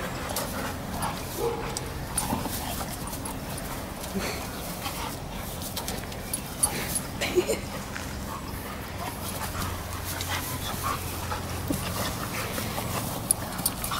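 Paws scuffle and thump on grass.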